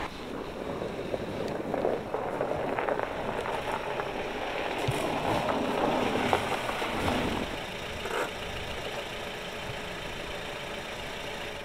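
A car engine hums as a car approaches slowly.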